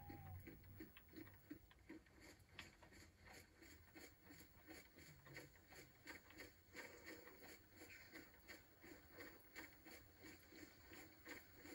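Footsteps swish and rustle through tall grass at a steady walking pace.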